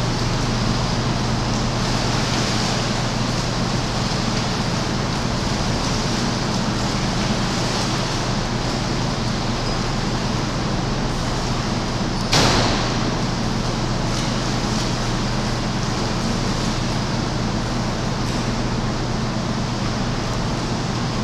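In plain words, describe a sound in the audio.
Water sloshes and laps steadily in an echoing hall.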